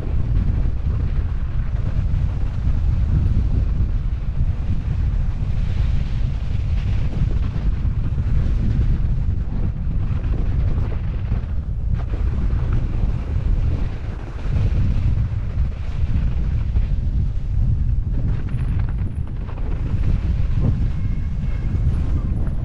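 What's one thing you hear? Wind buffets a helmet microphone during a fast descent.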